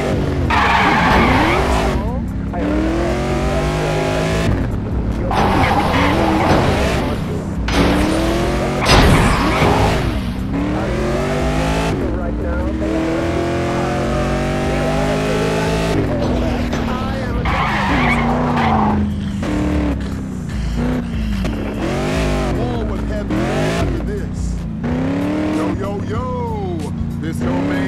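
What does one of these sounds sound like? A car engine revs and roars as it speeds along.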